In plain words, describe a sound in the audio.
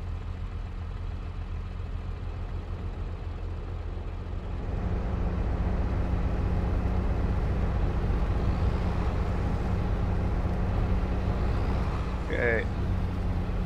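A combine harvester engine drones steadily, heard from inside the cab.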